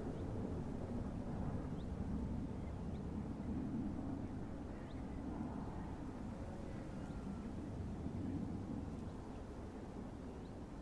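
Steel wheels roll and clatter on the rails.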